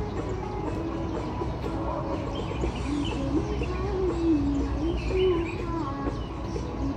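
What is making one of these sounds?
Feet shuffle lightly on pavement as people dance.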